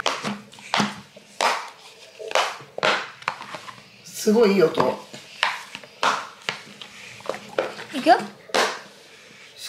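Silicone bubbles on a toy pop with soft, hollow pops.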